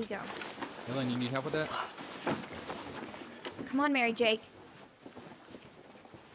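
Footsteps hurry across a carpeted floor.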